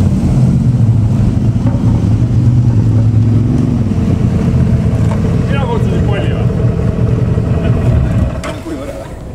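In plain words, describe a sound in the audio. Quad bike engines idle with a low rumble.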